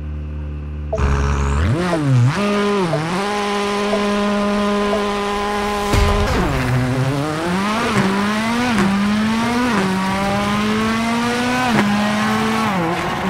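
A rally car engine revs, then accelerates and shifts up through the gears.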